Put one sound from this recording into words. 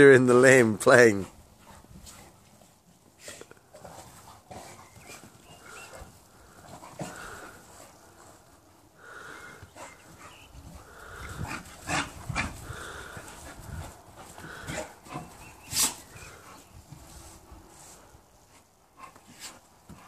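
Dogs scuffle and pant as they play on grass.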